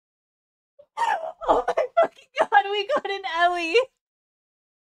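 A young woman shrieks and laughs excitedly into a microphone.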